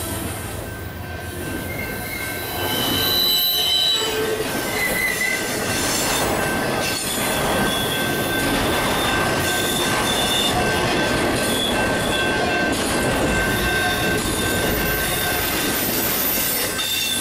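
A freight train rumbles past close by, its wheels clattering over the rail joints.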